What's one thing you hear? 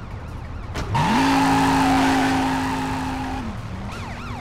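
Car tyres squeal and screech on pavement.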